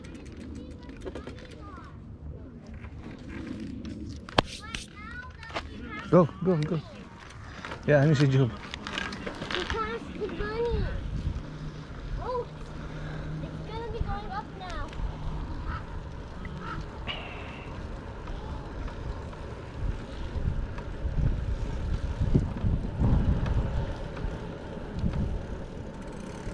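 Bicycle tyres roll over pavement outdoors.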